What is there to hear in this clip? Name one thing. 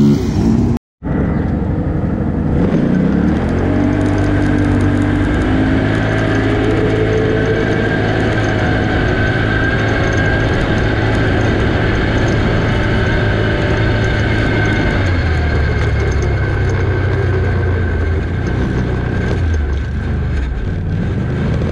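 A vehicle engine drones steadily while driving along a rough dirt track.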